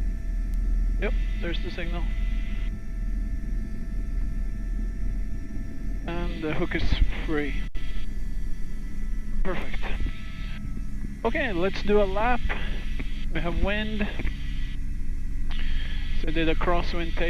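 A man speaks calmly over a crackly radio headset.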